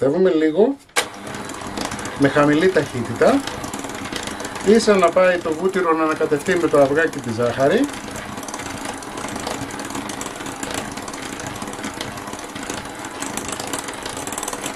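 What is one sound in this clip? An electric hand mixer whirs steadily as it beats batter in a bowl.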